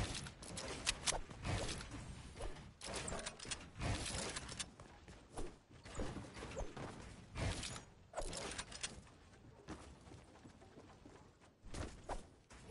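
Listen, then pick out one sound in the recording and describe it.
Game building pieces snap into place with quick, sharp clacks.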